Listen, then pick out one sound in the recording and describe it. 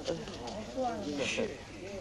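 A young man speaks in a pained, strained voice.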